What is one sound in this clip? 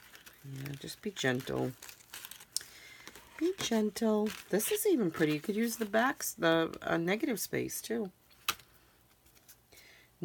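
Thin card rustles and crinkles as hands handle it.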